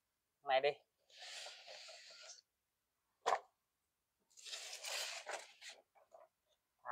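Cardboard rustles and scrapes as a box is handled.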